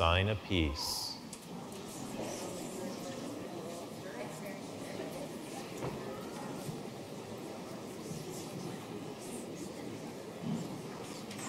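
A crowd of people murmurs and chats quietly.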